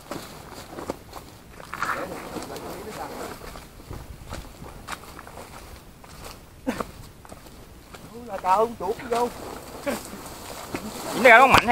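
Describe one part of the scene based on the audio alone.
Footsteps crunch through brush and leaves.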